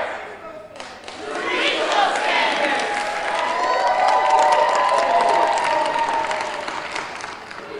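A crowd cheers and shouts through loudspeakers.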